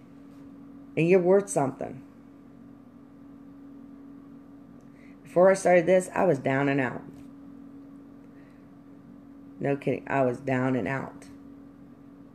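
A middle-aged woman speaks calmly in short phrases, close to the microphone.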